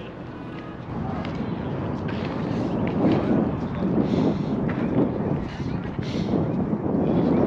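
A crowd of men and women chatters outdoors at a distance.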